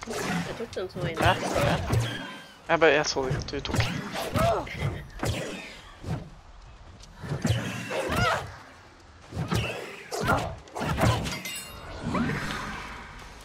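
A ghostly creature wails and shrieks.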